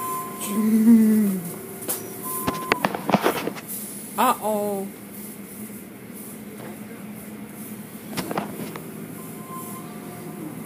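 Car wash machinery whirs and sprays water, muffled through a window.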